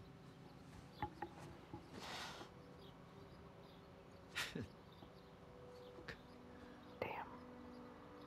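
A young woman sobs and sniffles quietly.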